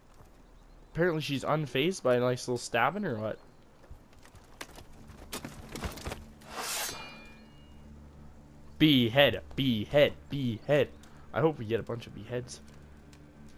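A man speaks in a low, stern voice.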